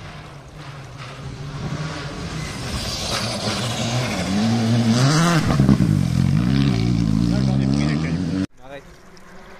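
A rally car engine roars loudly as the car speeds past.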